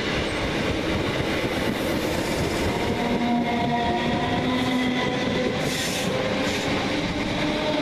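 A second train rushes past in the other direction.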